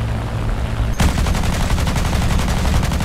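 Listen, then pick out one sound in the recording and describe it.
Aircraft machine guns fire in a rapid, rattling burst.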